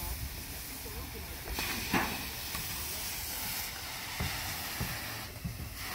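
A fire hose sprays water outdoors.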